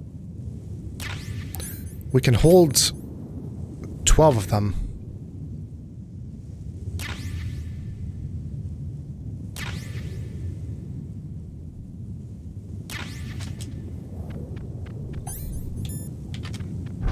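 Short electronic beeps chirp as a menu opens and closes.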